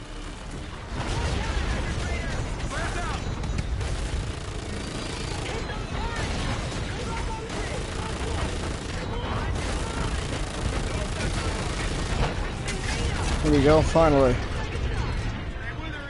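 Explosions boom and rumble amid heavy gunfire.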